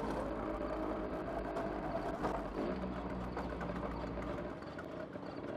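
A motorbike engine hums as it rolls closer.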